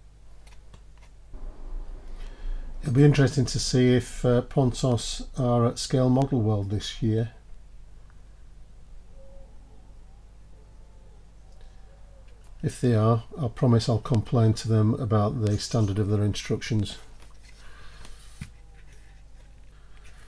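Small metal parts tap and click softly against a plastic jig.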